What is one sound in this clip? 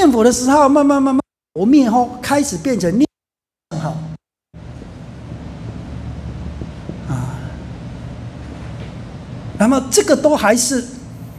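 A man speaks calmly into a microphone, heard over a loudspeaker.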